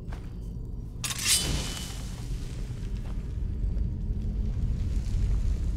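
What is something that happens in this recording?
A magic spell bursts to life with a crackling whoosh, then hums and fizzles softly.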